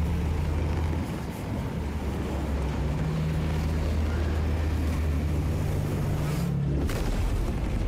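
A spaceship engine hums with a deep, steady roar.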